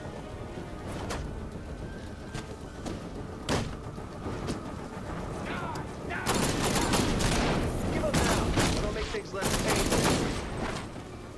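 Punches and kicks thud in a fight.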